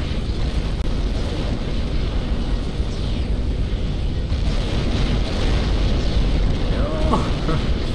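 Explosions rumble and boom in a game battle.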